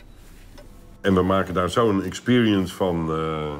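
A man speaks loudly, close by.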